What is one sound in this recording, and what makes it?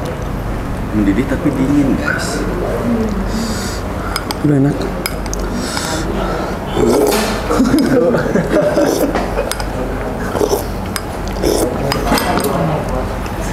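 A second young man talks and laughs close by.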